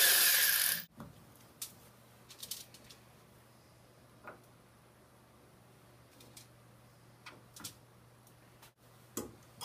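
Small metal parts click and tap inside a piano.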